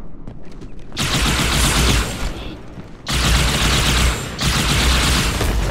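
Weapons fire in loud bursts with roaring blasts.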